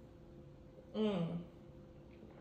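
A young woman exclaims briefly.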